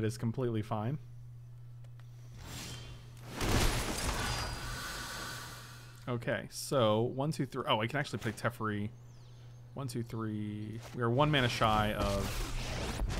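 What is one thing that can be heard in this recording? A man talks with animation close to a microphone.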